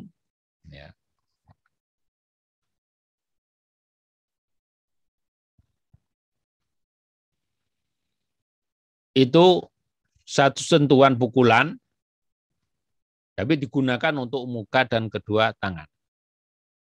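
A man speaks calmly into a microphone, as if over an online call.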